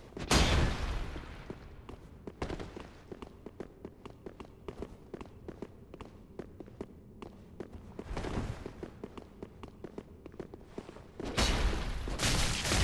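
Swords clash and swish in a fight.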